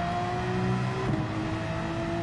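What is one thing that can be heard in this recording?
A race car engine shifts gear with a brief dip in pitch.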